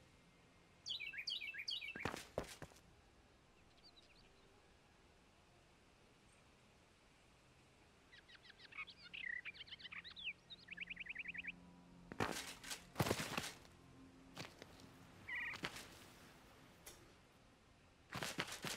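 Game building effects thud and chime in short bursts.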